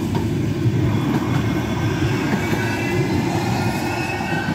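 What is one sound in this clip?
Tram wheels squeal on the rails.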